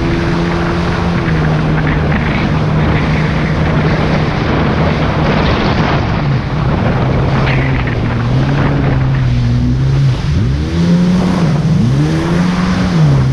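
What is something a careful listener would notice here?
Wind buffets the microphone.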